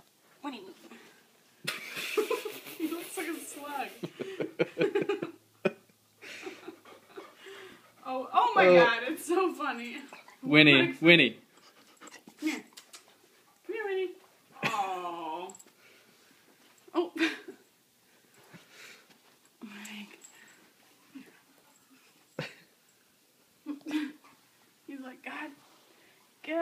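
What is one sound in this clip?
A puppy in a fabric stocking scuffles across a carpet.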